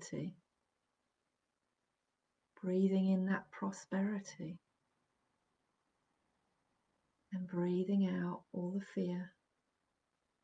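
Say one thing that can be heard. A middle-aged woman speaks calmly and close to the microphone, in short phrases with pauses.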